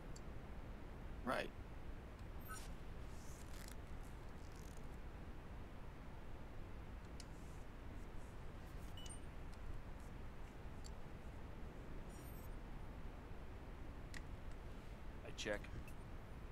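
Poker chips clink softly on a table.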